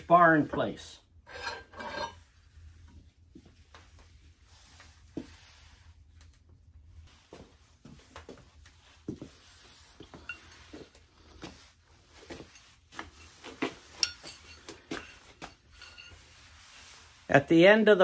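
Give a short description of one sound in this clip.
Metal tubes clink and knock as they are handled.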